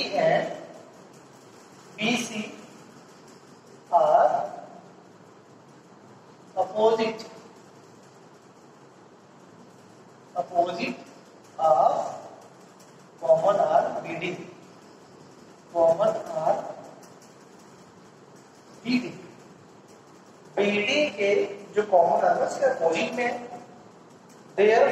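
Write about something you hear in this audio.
A young man speaks calmly in short phrases, as if explaining.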